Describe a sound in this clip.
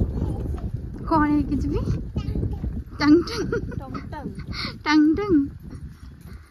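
A small child babbles and squeals nearby.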